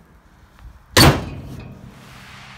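A hand slaps a car's metal hood with a sharp thump.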